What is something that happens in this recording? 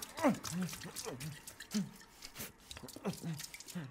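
Liquid splashes onto a hand.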